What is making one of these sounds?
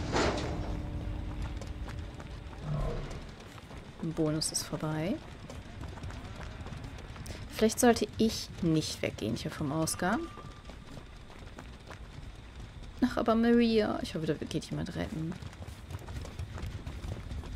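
Footsteps run quickly over dry ground.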